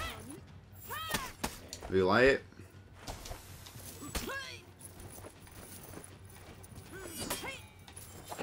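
Metal swords clash and ring sharply.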